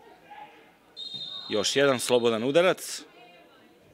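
A referee's whistle blows sharply in several short blasts.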